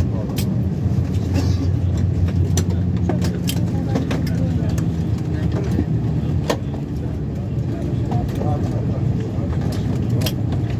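A jet engine hums steadily with a low rumble inside an airliner cabin as the plane taxis.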